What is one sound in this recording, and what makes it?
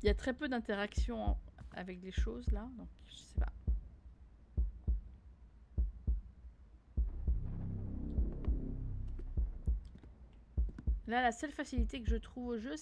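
Footsteps thud slowly on wooden floorboards.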